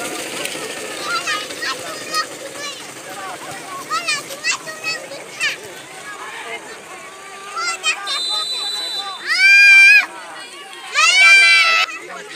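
Men shout to each other in the distance across an open field.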